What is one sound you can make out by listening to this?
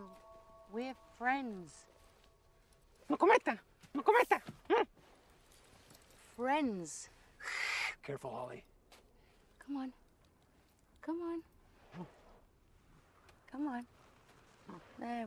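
A young woman speaks softly and coaxingly, close by.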